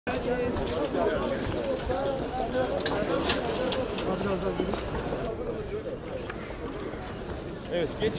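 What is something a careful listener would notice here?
A crowd of men talks all around.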